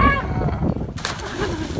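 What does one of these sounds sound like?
A man splashes into the water.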